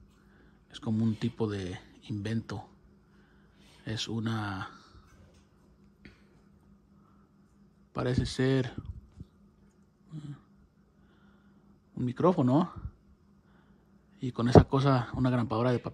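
An elderly man talks calmly and close by, into a microphone.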